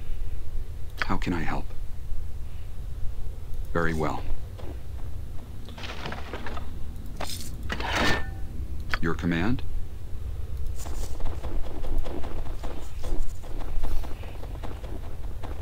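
A middle-aged man talks casually into a close microphone.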